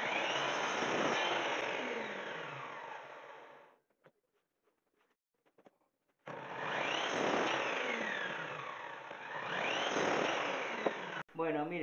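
A power mitre saw whines loudly as its blade spins up, cuts wood and winds down.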